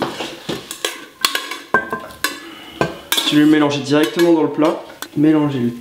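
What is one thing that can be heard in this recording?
Cooked pasta slides out of a pot into a dish.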